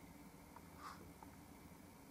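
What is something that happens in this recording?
A paintbrush brushes softly across canvas.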